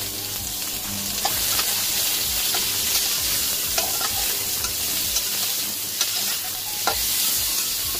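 A spatula scrapes and stirs in a metal wok.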